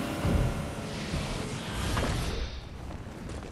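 Wind rushes past loudly during a glide through the air.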